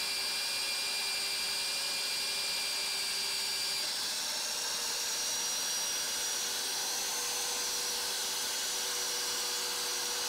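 A drill motor whines steadily at high speed.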